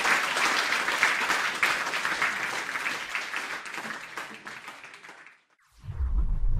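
An audience applauds loudly in a large hall, and the applause fades.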